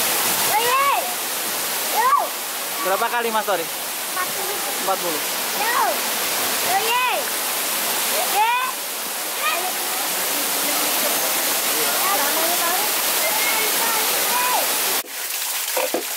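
Water pours down and splashes steadily.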